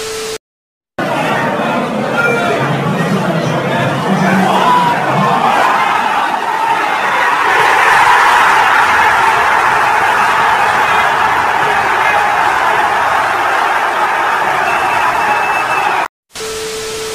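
A large crowd cheers and shouts loudly in an echoing hall.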